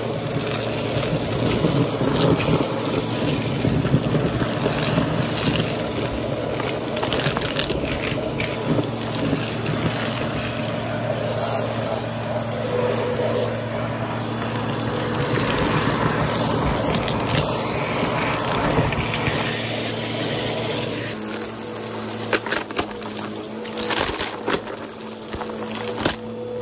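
A vacuum cleaner hums steadily up close.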